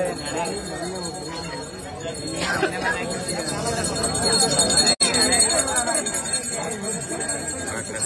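A crowd of men and women chatter close by, outdoors.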